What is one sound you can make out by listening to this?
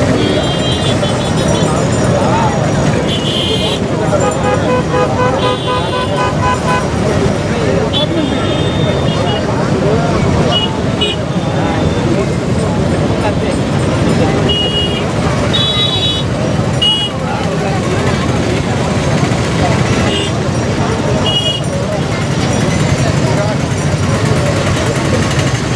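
A crowd of men, women and children chatter nearby outdoors.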